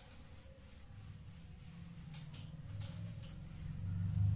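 A felt eraser rubs and squeaks against a whiteboard.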